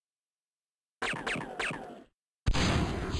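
Short electronic blips chirp quickly one after another.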